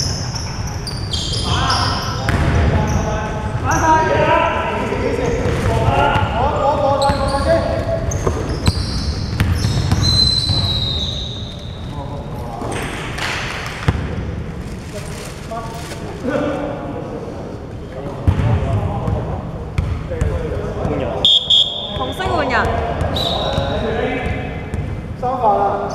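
Young men shout to each other in a large echoing gym.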